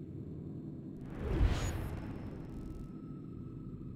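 A soft whoosh swells and quickly fades.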